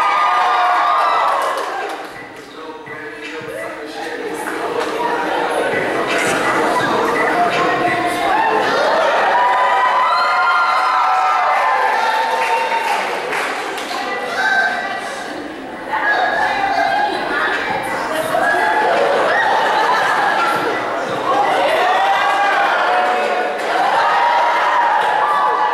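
Pop music with a singing voice plays through loudspeakers in a large room.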